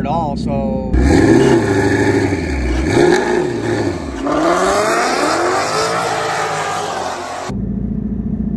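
A car engine revs loudly and roars away down a track.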